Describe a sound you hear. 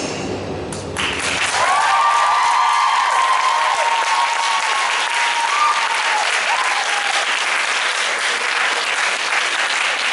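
An audience cheers and applauds in a large hall.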